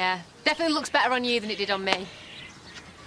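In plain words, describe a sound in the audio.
A young woman speaks brightly and with animation.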